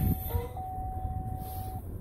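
A car radio knob clicks as it is turned.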